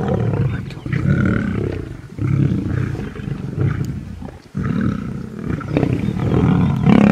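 Lions growl and rumble deeply, close by, in repeated bursts.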